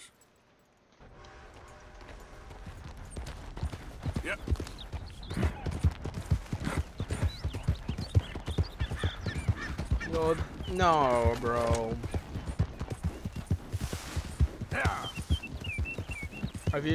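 A horse's hooves thud steadily as it trots along a path.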